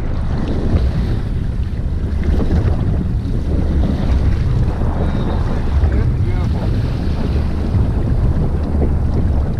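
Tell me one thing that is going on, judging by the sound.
Waves slosh and splash against a boat's hull.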